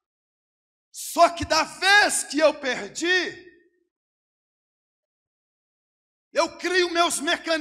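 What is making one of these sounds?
A man preaches loudly and with animation into a microphone, in bursts with pauses.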